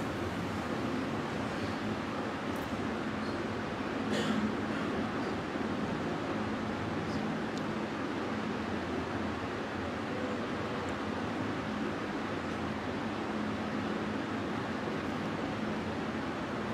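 A ceiling fan whirs steadily overhead.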